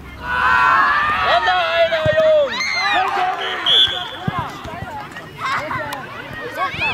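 Young children shout and cheer excitedly outdoors.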